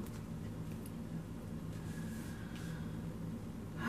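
A card is laid down softly on a cloth-covered table.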